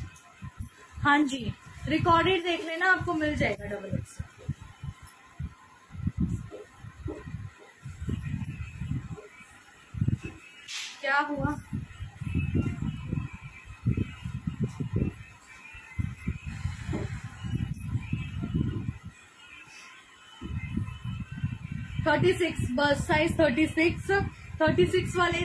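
A young woman speaks close by with animation.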